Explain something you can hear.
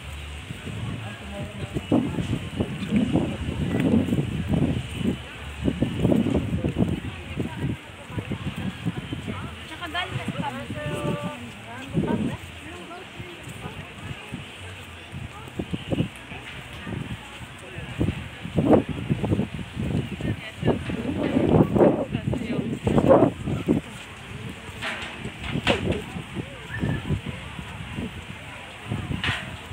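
Footsteps crunch softly on sand.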